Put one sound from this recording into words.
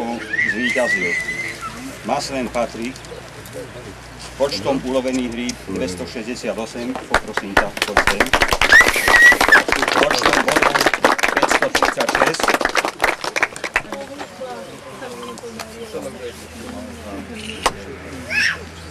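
An elderly man speaks calmly to a group outdoors.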